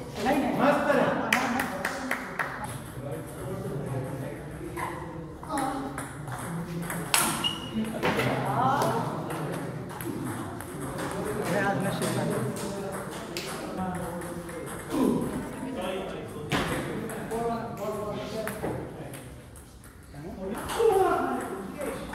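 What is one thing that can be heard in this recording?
A ping-pong ball clicks sharply back and forth across a table.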